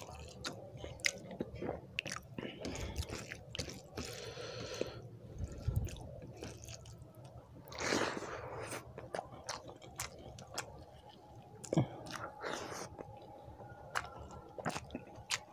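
Fingers squish and mix soft rice on a plate.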